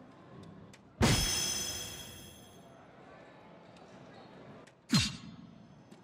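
A dart strikes a board with a sharp knock.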